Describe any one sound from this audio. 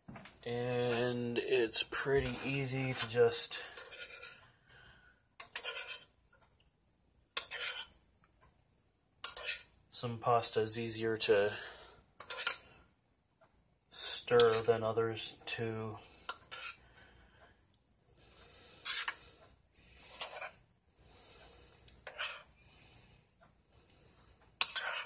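A metal spoon stirs pasta, scraping and clinking against a steel saucepan.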